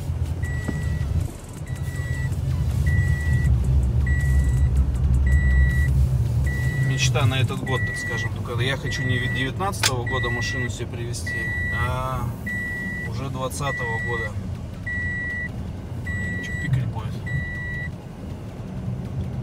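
A car's engine and tyres rumble low and steady while driving.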